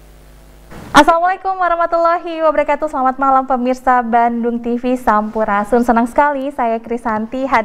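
A young woman speaks calmly into a microphone.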